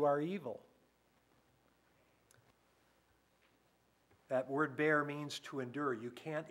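An older man speaks calmly through a microphone, pausing between phrases.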